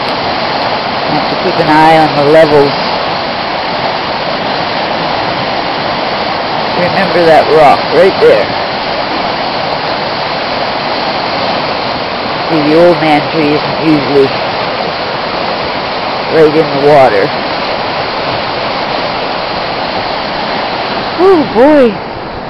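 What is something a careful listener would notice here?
A fast river rushes and churns loudly.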